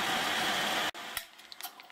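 A drill press whirs as a bit cuts into metal.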